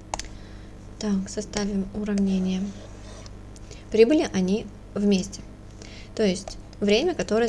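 A young woman speaks calmly and close to a microphone, with pauses.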